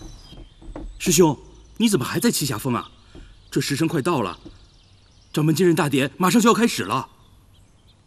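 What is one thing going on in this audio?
A young man speaks with surprise, close by.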